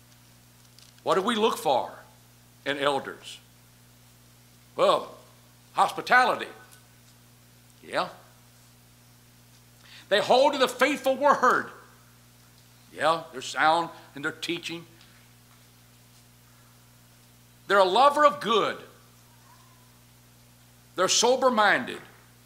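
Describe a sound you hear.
A middle-aged man speaks into a microphone in short, measured phrases with pauses between them.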